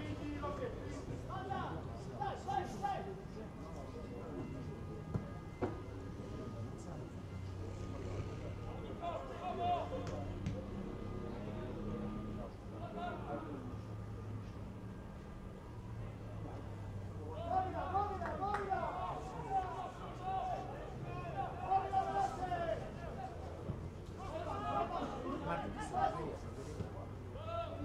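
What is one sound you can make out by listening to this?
Young men shout to one another across an open field.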